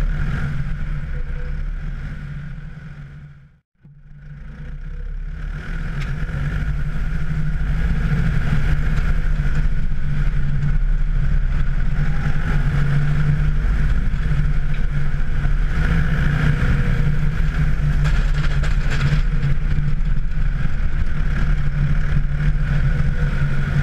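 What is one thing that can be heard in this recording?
A loader's diesel engine rumbles steadily up close.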